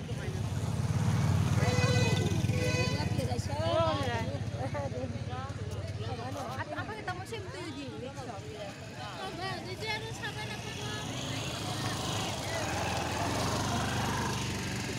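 Motorcycle engines rumble steadily close by.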